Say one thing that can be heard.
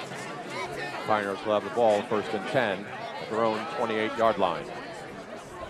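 Young men shout and cheer loudly nearby.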